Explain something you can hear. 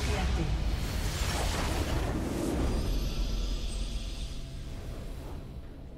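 A large structure explodes with a deep rumbling boom.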